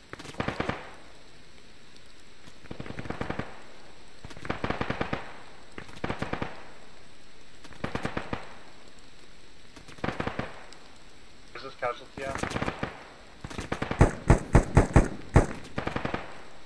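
A rifle fires in short, sharp bursts.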